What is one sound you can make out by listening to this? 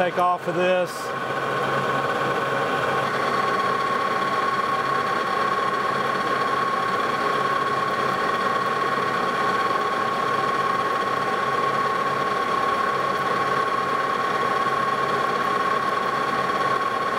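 A lathe tool cuts into spinning metal with a steady hiss.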